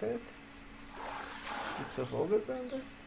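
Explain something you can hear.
Water splashes as a fish is pulled out.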